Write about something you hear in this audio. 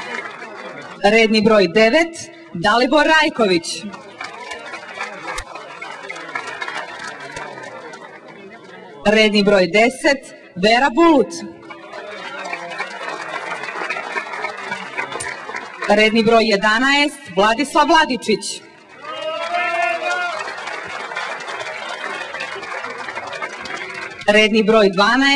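A man announces loudly through a loudspeaker in short bursts.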